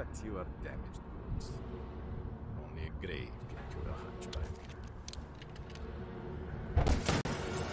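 An older man speaks in a low, menacing voice.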